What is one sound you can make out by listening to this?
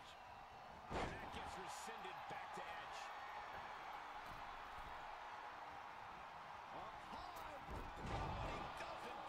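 Bodies slam hard onto a wrestling mat.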